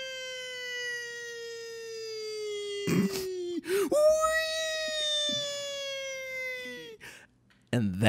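A man sings long, drawn-out notes close to a microphone.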